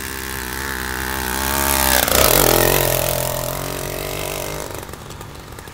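A small motorized bicycle engine buzzes, drops in pitch as it passes close by, then fades away.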